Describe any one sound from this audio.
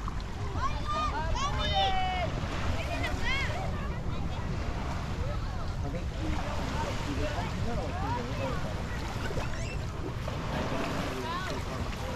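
Children and adults shout and call out in the distance.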